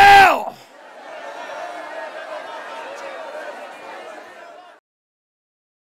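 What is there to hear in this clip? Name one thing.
A crowd of people sing and pray aloud together in a large room.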